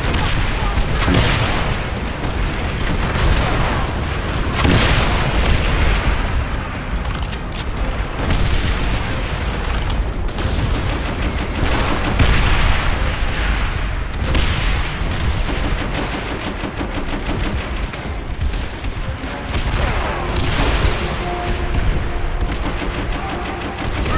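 Explosions boom and rumble all around.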